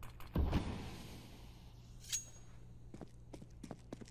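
A knife is drawn with a metallic swish.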